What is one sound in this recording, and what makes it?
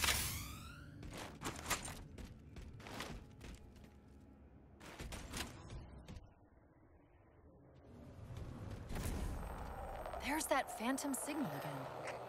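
Heavy armoured footsteps clank on a metal floor.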